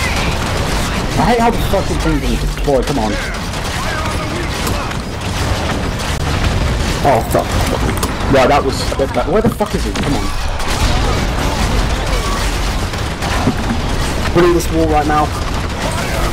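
Heavy gunfire fires in bursts.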